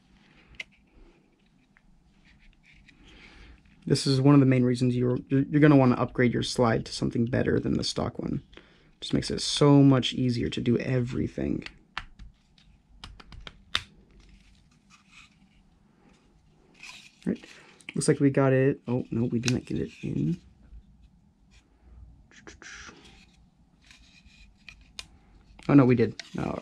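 Small hard parts click and snap as they are fitted together by hand.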